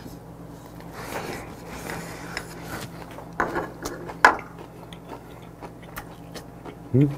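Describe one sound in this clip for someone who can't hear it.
A man chews and slurps food loudly up close.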